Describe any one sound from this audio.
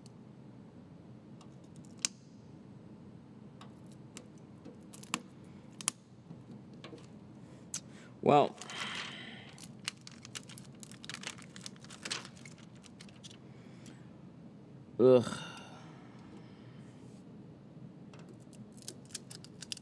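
Fingernails and a small tool tap and scrape on glass.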